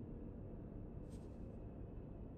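A short interface click sounds once.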